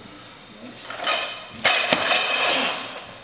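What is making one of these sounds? Weight plates rattle on a barbell as it is lifted sharply.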